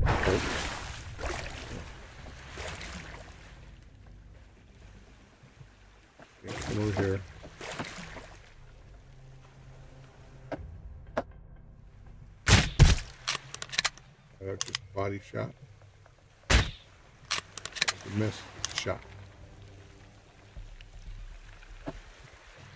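Water splashes as a swimmer strokes through choppy waves.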